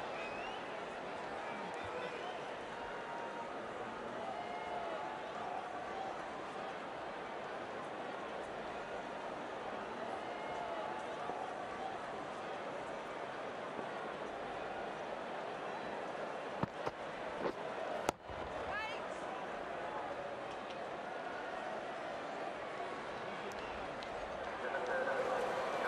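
A large crowd murmurs and cheers steadily.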